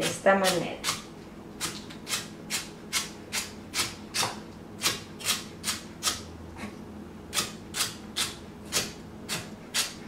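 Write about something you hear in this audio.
A knife chops celery on a wooden cutting board in quick, steady strokes.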